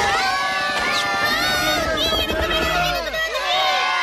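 Helicopters whir overhead.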